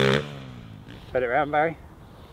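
A young man speaks briefly close by.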